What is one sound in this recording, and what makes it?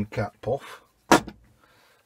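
Hands rustle a cloth.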